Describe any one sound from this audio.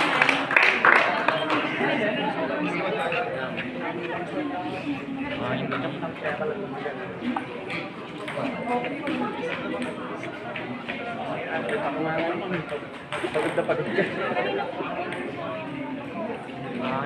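Children chatter and call out all around, outdoors.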